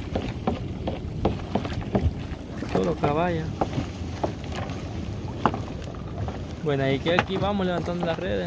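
Water splashes and drips from a net being hauled out of the sea.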